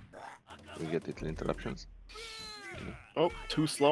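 Blows and sword slashes from a fighting game ring out sharply.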